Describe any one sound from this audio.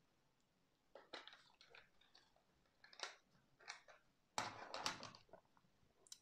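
Plastic cartridges rattle and click as hands handle them.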